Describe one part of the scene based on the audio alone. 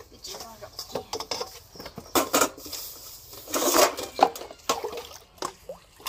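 Water splashes in a metal bowl.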